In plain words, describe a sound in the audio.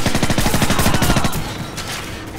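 A rifle fires in rapid bursts, echoing in a large hall.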